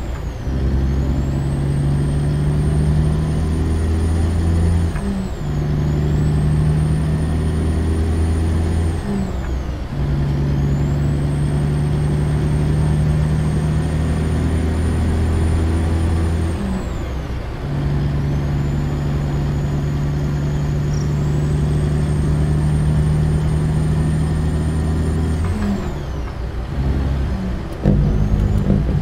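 Tyres hum on a paved road.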